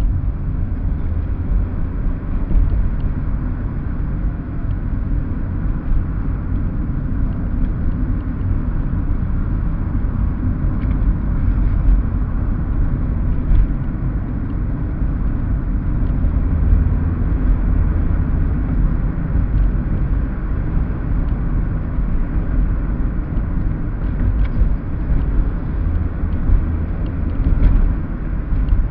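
A car's engine hums steadily while driving.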